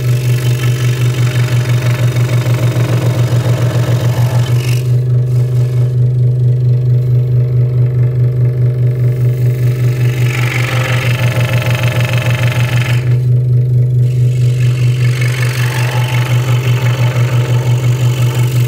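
A scroll saw blade buzzes as it cuts through wood.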